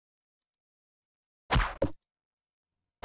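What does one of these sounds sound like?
A bow twangs as an arrow is shot.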